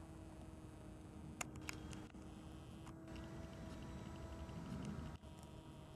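The electric motor of a radio-controlled model airplane hums faintly, high overhead.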